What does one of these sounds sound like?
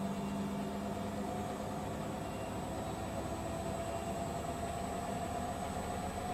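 Several washing machines hum and whir steadily as their drums turn.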